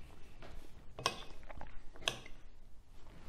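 Cutlery clinks on a plate.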